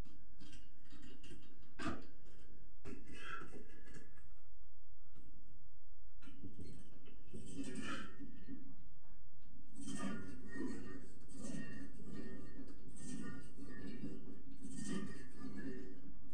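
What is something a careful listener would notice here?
A cable exercise machine clanks and whirs as weights are pulled.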